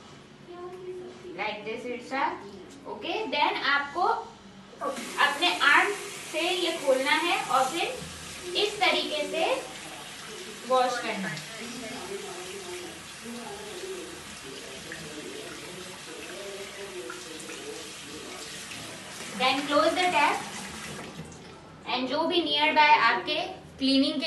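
A woman talks calmly and clearly to a child close by.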